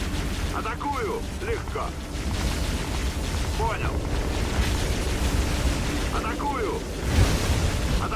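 Energy weapons fire in rapid bursts.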